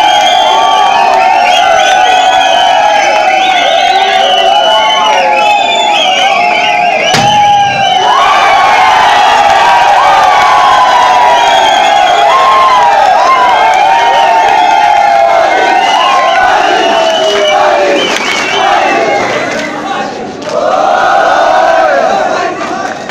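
A crowd of young people cheers and shouts loudly close by.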